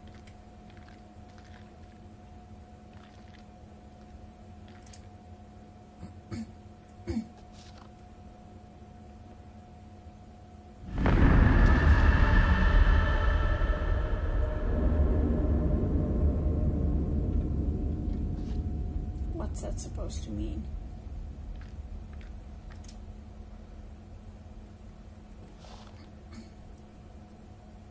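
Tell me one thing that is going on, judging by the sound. A young woman speaks quietly close to a microphone.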